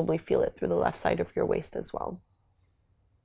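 A woman speaks calmly and softly close to a microphone.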